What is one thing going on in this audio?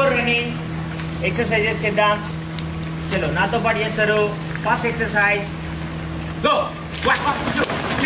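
A man calls out drill commands loudly outdoors.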